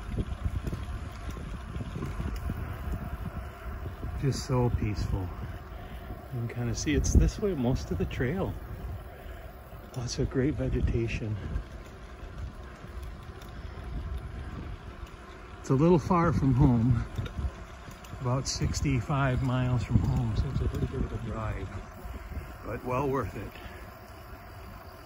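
Wind rumbles past while riding.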